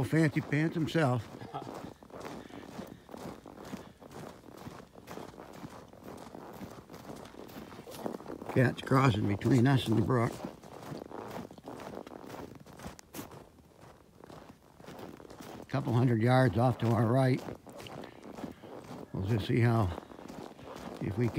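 Boots crunch on a snowy road.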